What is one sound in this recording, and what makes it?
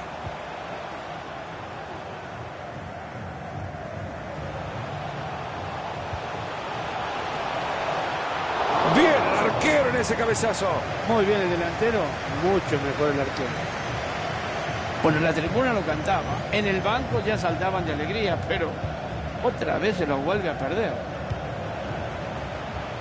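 A stadium crowd roars steadily and swells to a loud cheer.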